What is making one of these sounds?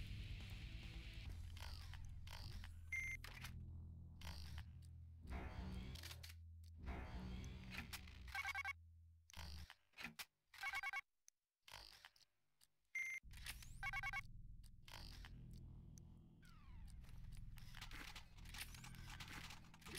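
Game weapons click and clank as they are switched in quick turns.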